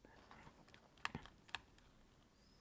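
A small plastic part clicks softly as fingers handle it.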